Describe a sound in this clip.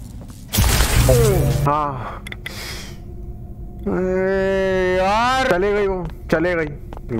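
A young man exclaims loudly and drawls his words close to a microphone.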